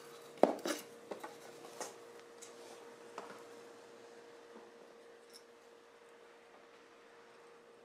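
Wood taps and scrapes against wood.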